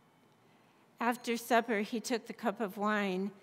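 A woman chants a short phrase into a microphone.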